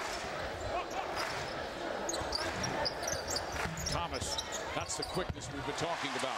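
Sneakers squeak sharply on a hardwood floor.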